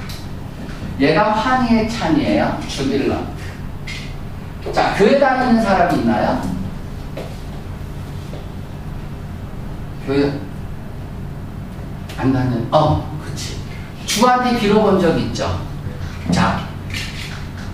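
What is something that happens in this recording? A young man speaks clearly into a microphone, pausing often.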